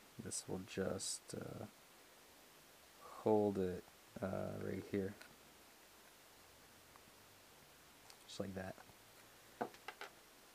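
Plastic parts click and rattle as hands fit them together.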